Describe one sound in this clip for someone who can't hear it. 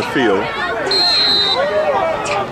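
A referee's whistle blows once, short and shrill.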